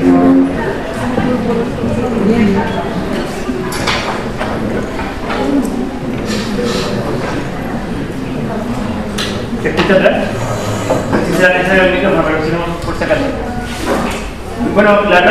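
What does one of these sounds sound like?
A man speaks calmly through a microphone in a room with some echo.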